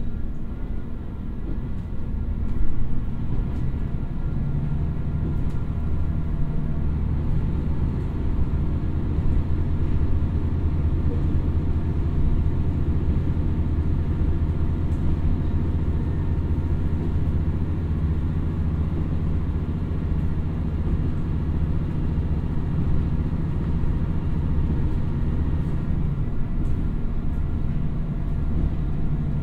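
A diesel train engine rumbles steadily and loudly.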